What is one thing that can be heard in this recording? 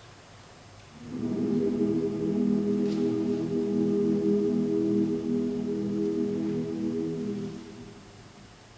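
A mixed choir sings a long held chord in a large echoing hall.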